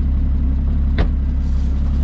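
A car's rear lid shuts with a thud.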